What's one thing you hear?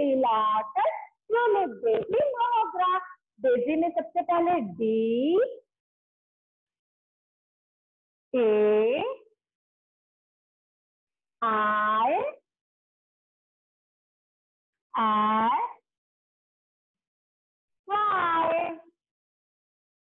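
A young woman speaks clearly and slowly, pausing between words.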